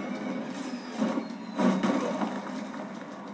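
A loud explosion booms from a television speaker.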